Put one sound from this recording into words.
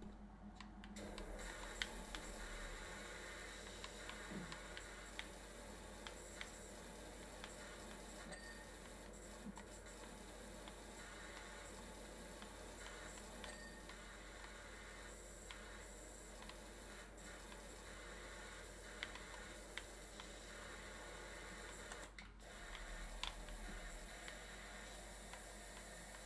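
A pressure washer sprays water with a steady hiss.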